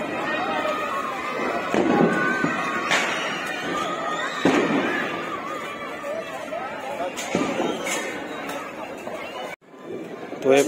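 Firecrackers bang sharply outdoors.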